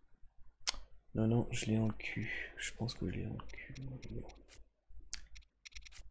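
Short menu clicks tick several times.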